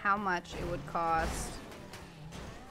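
A car crashes with a thud.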